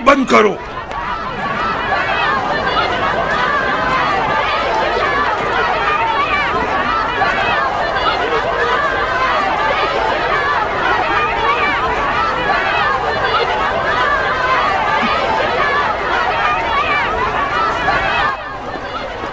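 A crowd of men and women shouts and clamours in a commotion.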